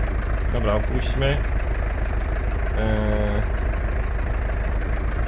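A tractor engine rumbles steadily with a low, even throb.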